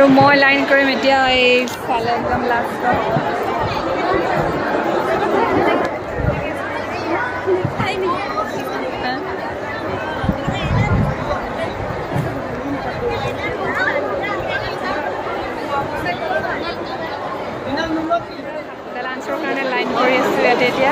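A crowd of young women chatters all around, close by.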